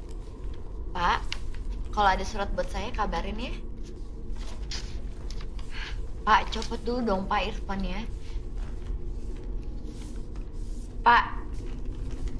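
A young woman speaks pleadingly and with emotion, close by.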